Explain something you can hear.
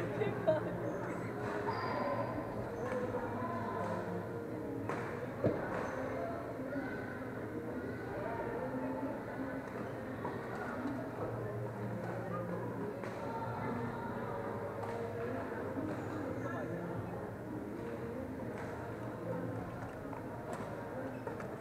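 A badminton racket hits a shuttlecock.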